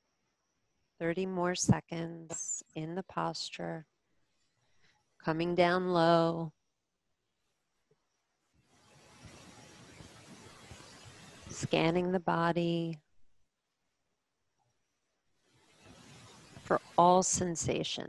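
A woman speaks calmly and slowly, close to a microphone.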